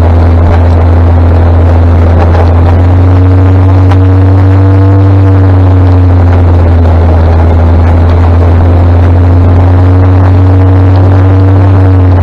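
A motorcycle engine hums loudly and steadily close by.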